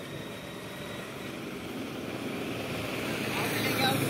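An auto rickshaw engine approaches along the road.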